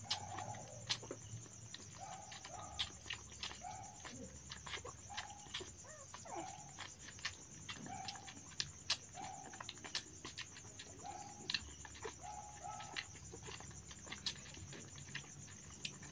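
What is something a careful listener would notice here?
A puppy suckles noisily from a bottle with wet clicking sounds.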